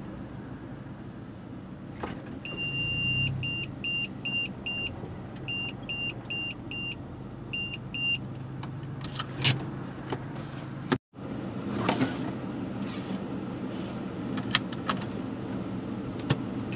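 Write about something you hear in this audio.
A car engine hums steadily from inside the car as it drives along.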